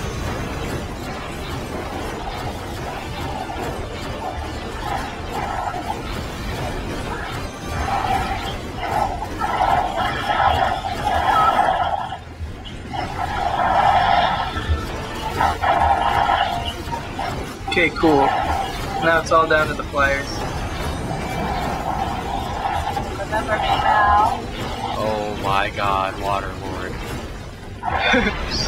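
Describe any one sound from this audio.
Magic spells zap and crackle in quick bursts.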